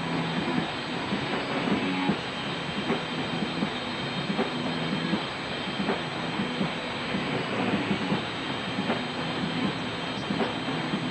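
Drums pound with crashing cymbals.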